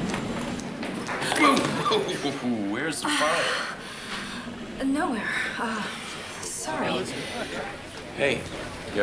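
A woman speaks urgently up close.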